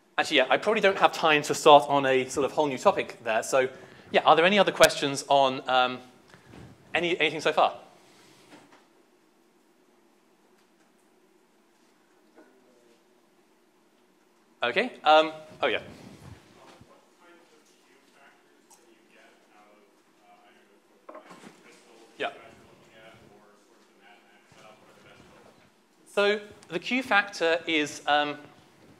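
A young man lectures in a large echoing hall.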